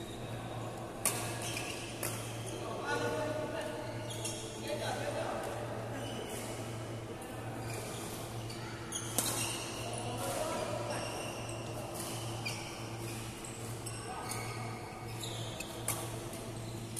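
Badminton rackets smack a shuttlecock in sharp pops.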